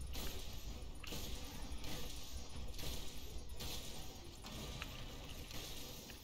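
Weapon strikes land with heavy thuds on a monster.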